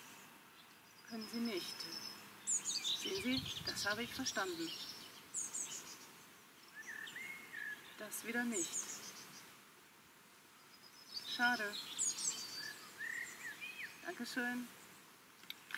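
A middle-aged woman speaks calmly into a telephone handset outdoors.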